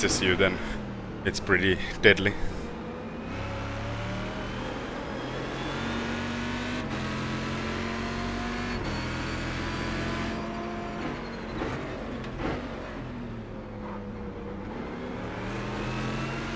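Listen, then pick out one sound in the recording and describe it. A racing car engine roars steadily, rising and falling in pitch as it shifts gears.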